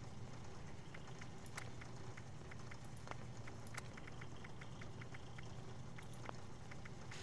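Soft interface clicks tick quickly, one after another.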